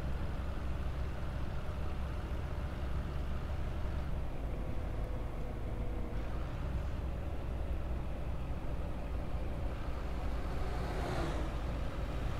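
A bus engine rumbles steadily as it drives along a road.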